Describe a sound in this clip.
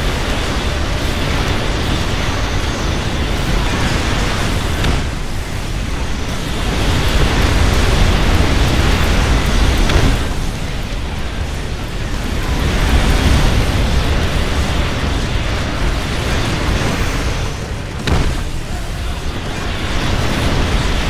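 Loud laser blasts and explosions rumble in a chaotic battle.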